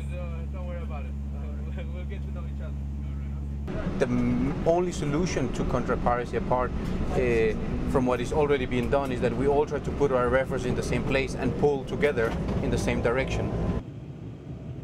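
An aircraft cabin hums steadily.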